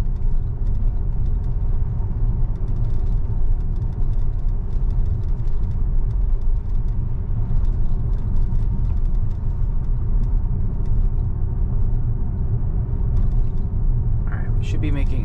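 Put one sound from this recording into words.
Road noise rumbles inside an electric car driving on a paved road.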